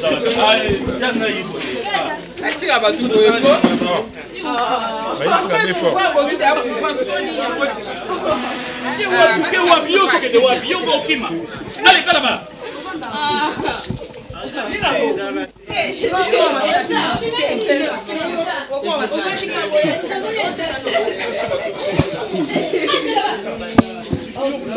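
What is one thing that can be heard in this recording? Several men and women talk over one another with animation, close by, outdoors.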